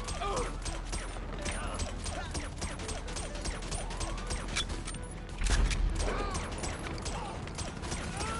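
A silenced pistol fires in quick muffled shots.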